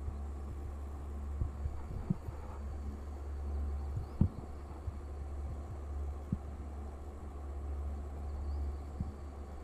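Wind rumbles low and steadily outdoors.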